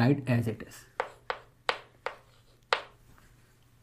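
Chalk taps sharply against a blackboard several times.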